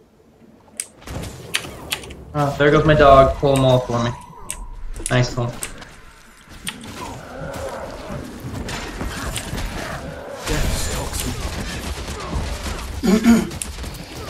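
Video game combat effects whoosh and crackle as spells are cast.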